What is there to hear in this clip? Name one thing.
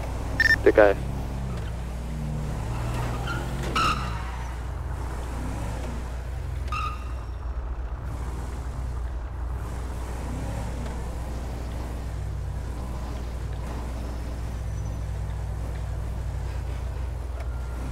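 A car engine hums steadily as a vehicle drives.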